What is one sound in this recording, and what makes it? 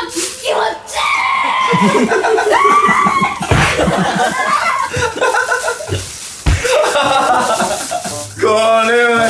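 Boys laugh loudly close by.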